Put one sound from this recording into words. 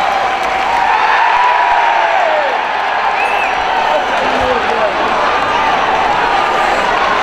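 A large crowd cheers and chants loudly in a big echoing arena.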